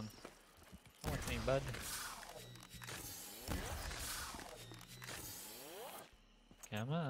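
A ray gun fires sweeping electronic blasts.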